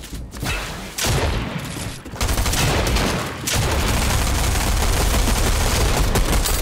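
Rapid video game gunfire and building clatter crackle loudly.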